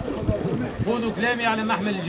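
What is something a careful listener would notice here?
A man speaks loudly to a crowd.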